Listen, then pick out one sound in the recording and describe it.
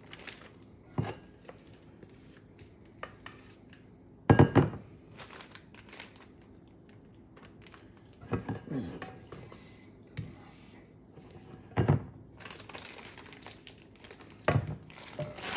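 A metal bowl knocks against a hard surface.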